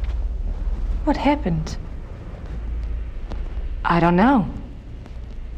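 A young woman speaks briefly and calmly.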